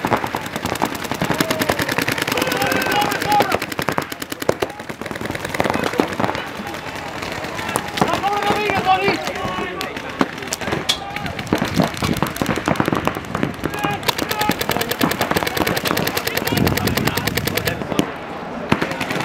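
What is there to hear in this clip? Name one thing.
Paintball markers fire in rapid bursts of sharp pops.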